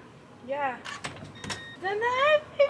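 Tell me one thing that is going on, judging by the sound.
A door creaks and opens.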